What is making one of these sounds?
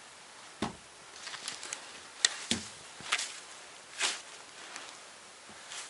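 A shovel scrapes snow.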